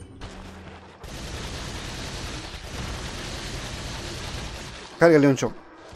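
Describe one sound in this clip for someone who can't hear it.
A rifle fires rapid bursts of shots that echo off stone walls.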